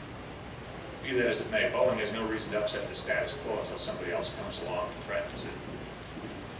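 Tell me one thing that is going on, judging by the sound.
A middle-aged man speaks calmly into a microphone over a loudspeaker.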